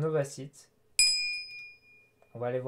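A bright notification chime rings and fades.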